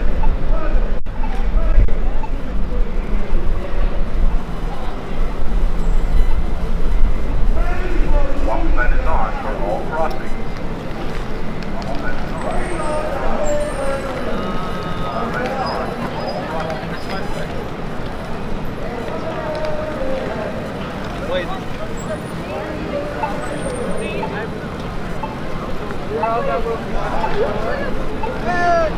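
A busy crowd murmurs and chatters outdoors in a city street.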